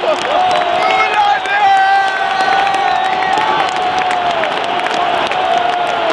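A crowd claps hands in rhythm.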